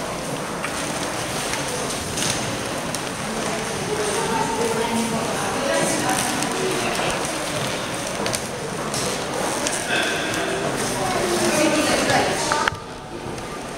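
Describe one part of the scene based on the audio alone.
Many people chatter, echoing in a large hall.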